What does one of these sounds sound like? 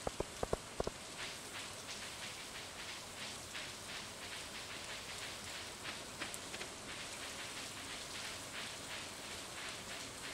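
Footsteps tap quickly on a stone path.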